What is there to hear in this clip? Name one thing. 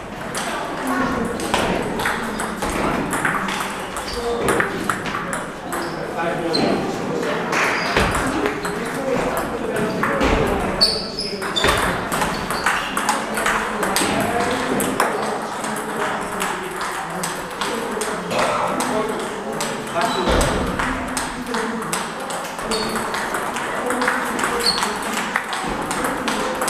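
A table tennis ball clicks back and forth across a table and paddles.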